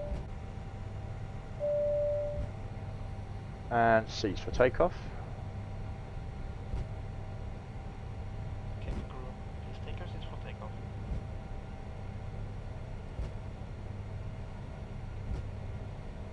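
Jet engines hum steadily as an airliner rolls along a runway.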